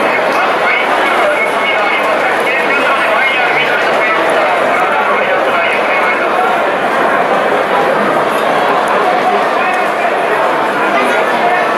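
A large crowd chatters and cheers in a big echoing stadium.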